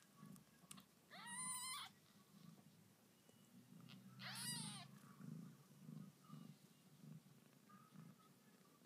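A cat purrs steadily and softly, close by.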